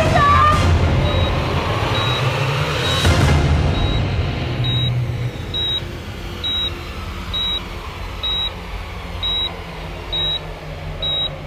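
A heart monitor beeps steadily.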